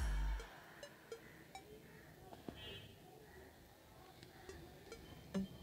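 Oil sizzles and crackles softly in a pan.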